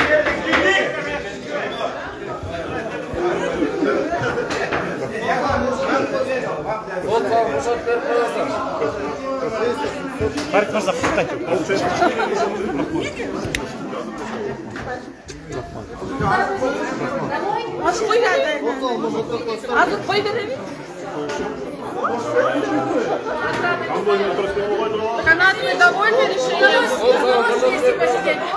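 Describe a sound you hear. Several people talk over each other nearby.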